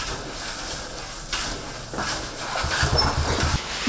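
Liquid sloshes and splashes as a large pot is stirred by hand.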